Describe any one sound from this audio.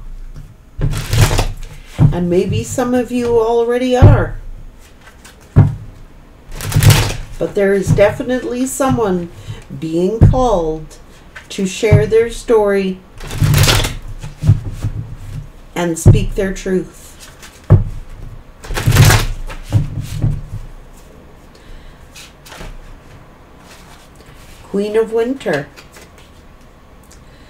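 Cards shuffle and tap in a woman's hands.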